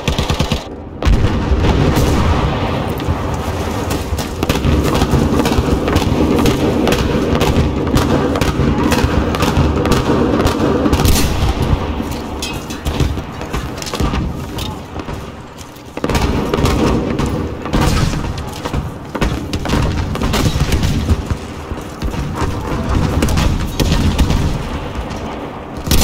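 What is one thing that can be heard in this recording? Explosions boom and rumble all around.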